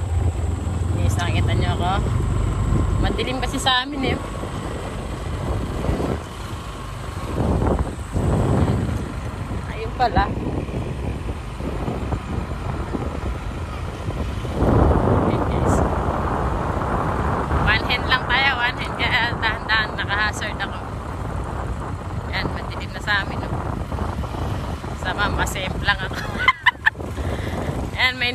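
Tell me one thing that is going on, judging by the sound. A woman talks close to the microphone.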